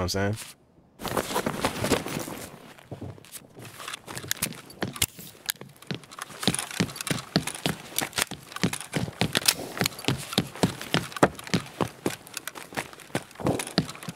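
Footsteps thud and scrape on a hard floor.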